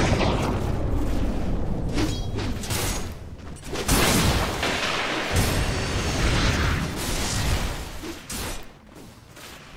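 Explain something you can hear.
Weapons clash in a fight.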